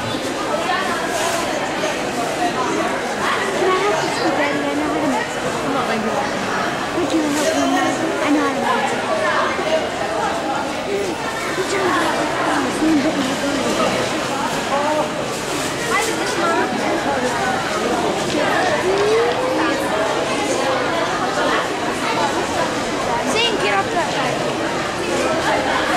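A busy crowd of people chatters all around.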